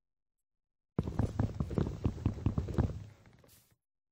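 Wood is chopped with repeated knocks in a video game.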